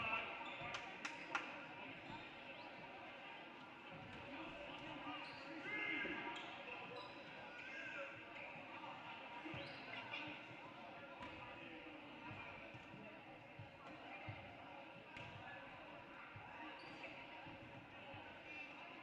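A crowd of spectators chatters steadily in an echoing gym.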